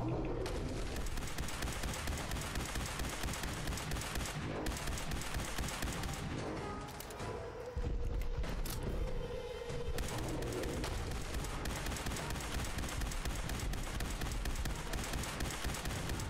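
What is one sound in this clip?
A laser gun fires in rapid zaps.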